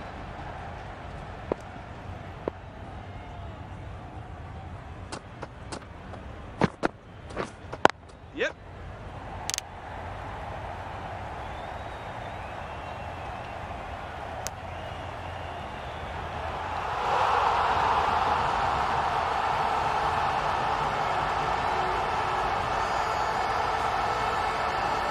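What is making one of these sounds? A stadium crowd murmurs and cheers, swelling louder.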